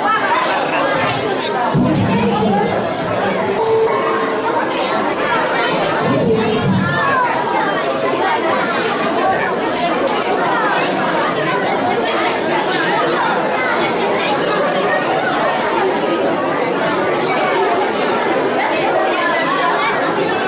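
A crowd of children and adults chatters throughout in a large echoing hall.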